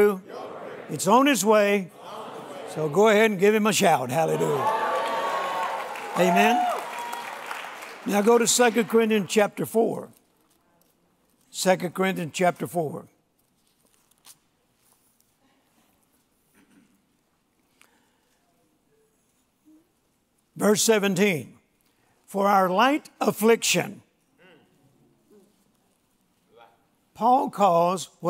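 An elderly man speaks slowly and earnestly through a microphone, with long pauses.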